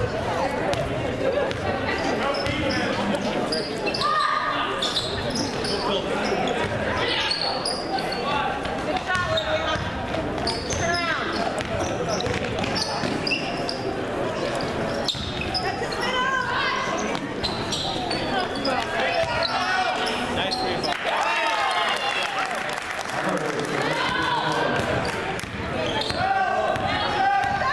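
A crowd in a large echoing gym cheers and shouts.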